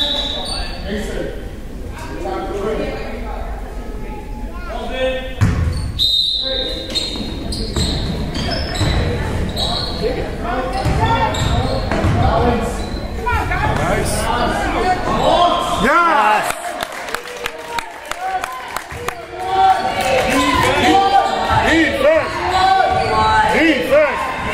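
Players and spectators shout and call out in a large echoing hall.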